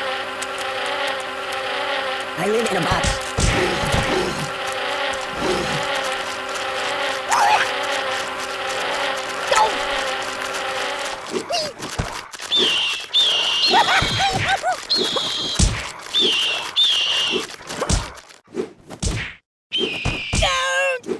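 A rag doll thuds and smacks as it is hit and thrown about.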